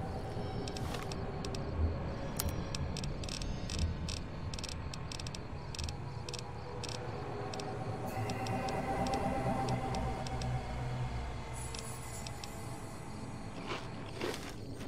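Soft electronic clicks tick as a menu scrolls.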